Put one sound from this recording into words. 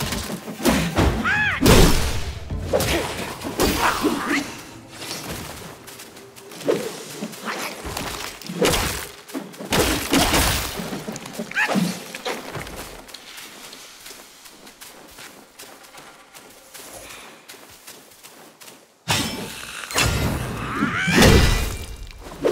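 A creature snarls and growls.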